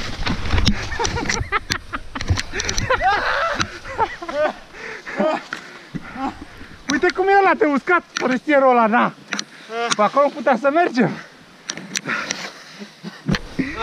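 A young man who has fallen shouts and laughs nearby.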